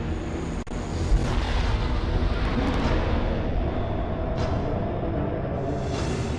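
A deep, swirling whoosh of energy rises and surges.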